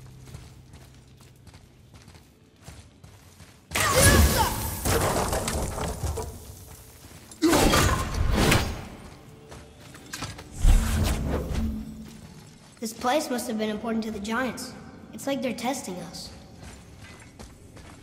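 Heavy footsteps thud on rocky ground.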